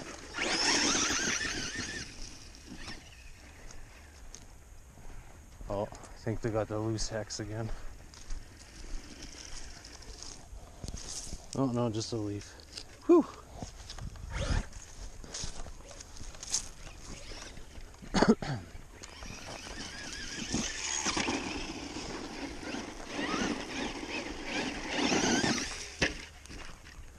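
A small electric motor whines as a toy car speeds along.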